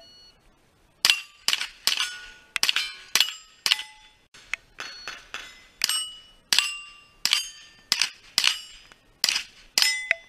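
A pistol fires rapid shots outdoors.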